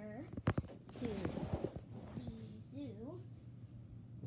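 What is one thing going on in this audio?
A young girl talks excitedly close to the microphone.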